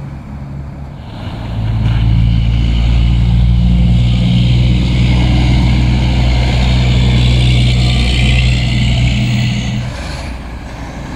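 A car drives by on a slushy road.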